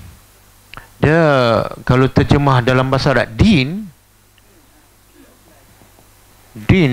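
A middle-aged man lectures through a headset microphone.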